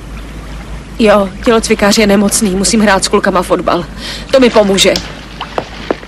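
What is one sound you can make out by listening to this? A woman speaks in a distressed, tearful voice close by.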